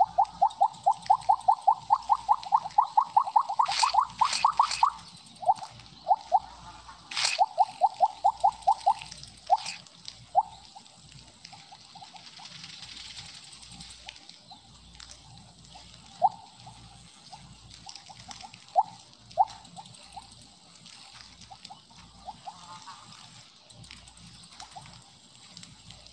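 Quick, bright electronic blips chime in rapid succession, then come only now and then.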